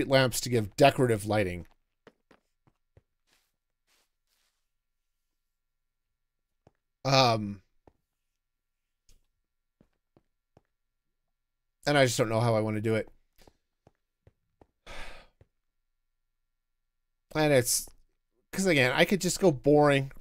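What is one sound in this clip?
A man talks with animation in short bursts, close to a headset microphone.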